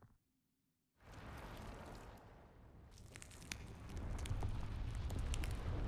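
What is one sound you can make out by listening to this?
Embers crackle and spark.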